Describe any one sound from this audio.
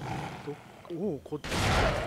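A dog growls.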